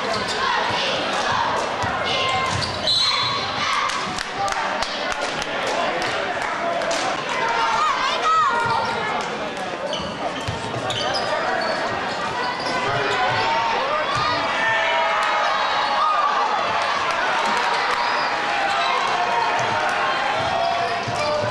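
A basketball bounces on the hardwood floor.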